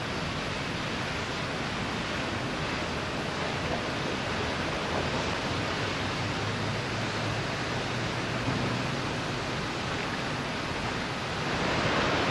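Molten metal roars and crackles in a furnace with a loud, steady rumble.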